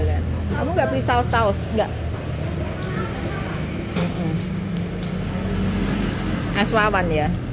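A freezer hums steadily.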